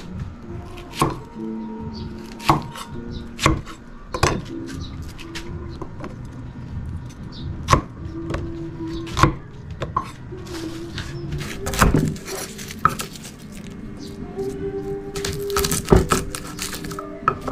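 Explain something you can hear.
A knife chops sharply on a wooden board.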